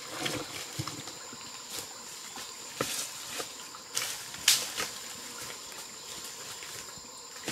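Dry leaves crunch and rustle under boots climbing a slope.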